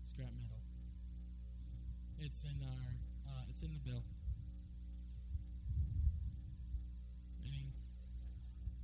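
A young man speaks calmly into a microphone, heard through a loudspeaker.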